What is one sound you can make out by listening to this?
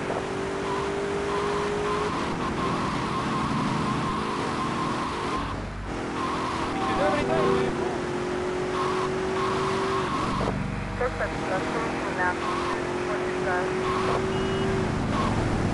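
A car engine hums as it drives.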